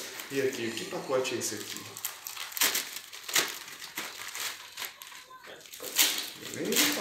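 Paper and plastic packaging rustle and crinkle.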